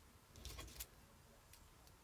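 A felt-tip marker scratches faintly across paper.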